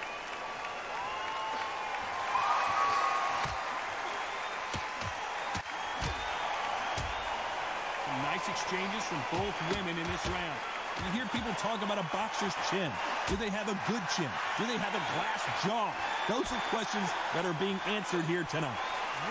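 Boxing gloves thud as punches land on a body.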